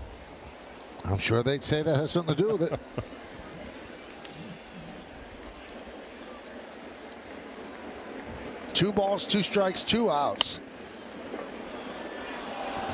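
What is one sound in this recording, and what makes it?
A crowd murmurs softly throughout a large open stadium.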